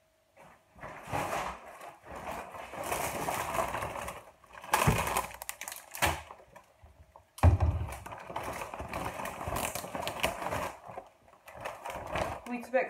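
A plastic shopping bag rustles and crinkles.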